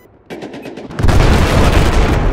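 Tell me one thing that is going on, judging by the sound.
Gunfire rattles loudly and rapidly.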